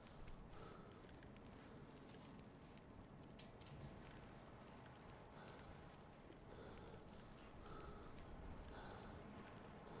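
A torch flame crackles and hisses steadily.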